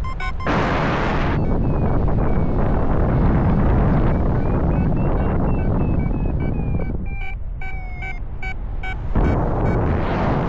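Strong wind rushes and buffets loudly past the microphone.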